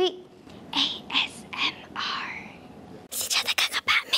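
A young woman speaks brightly into a microphone.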